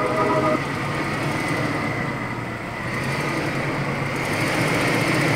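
An engine rumbles low and steadily as a vehicle crawls slowly.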